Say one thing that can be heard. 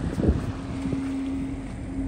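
A flag flaps in the wind.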